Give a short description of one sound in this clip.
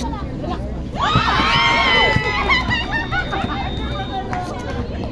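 Several young women cheer loudly.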